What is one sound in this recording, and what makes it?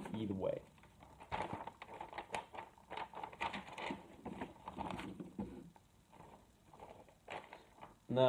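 Paper rustles and crinkles in a man's hands.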